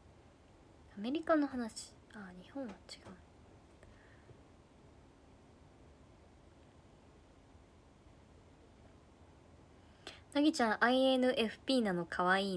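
A young woman speaks calmly and close by, with pauses.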